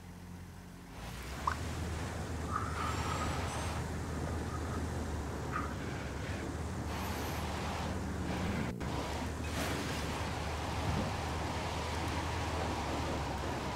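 A heavy vehicle's engine rumbles steadily as it drives along a road.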